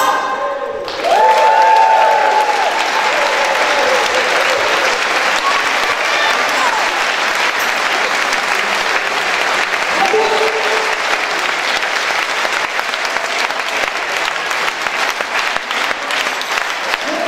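An audience claps loudly and steadily.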